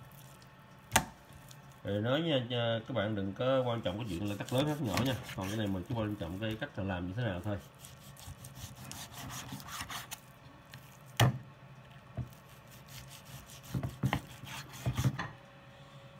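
A cleaver chops through meat onto a wooden board with sharp knocks.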